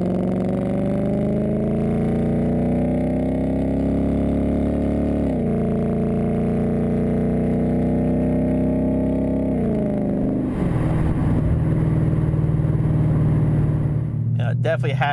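A car's exhaust roars as the engine revs up through the gears.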